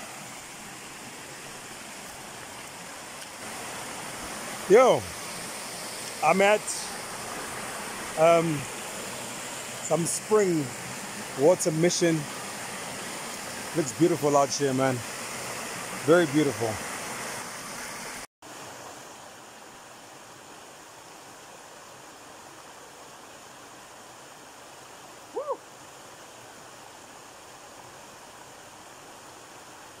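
Water rushes over rocks in a stream.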